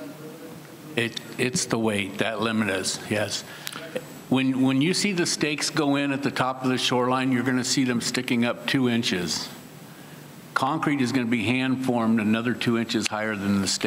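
An older man speaks forcefully into a microphone, with pauses.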